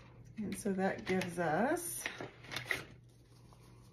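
Paper bills rustle as they are handled.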